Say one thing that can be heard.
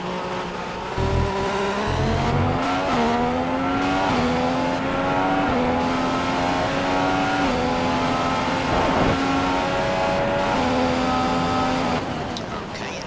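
A Formula One car engine revs high and shifts up through the gears in a racing game.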